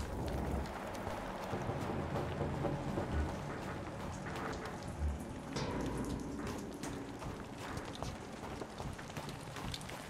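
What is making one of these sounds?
Footsteps crunch steadily on wet ground.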